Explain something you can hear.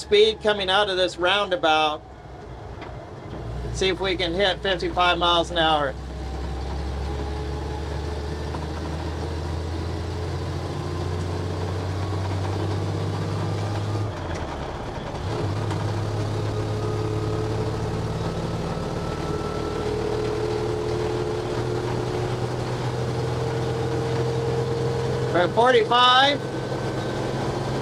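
A heavy vehicle's engine drones steadily and slowly rises in pitch as it speeds up.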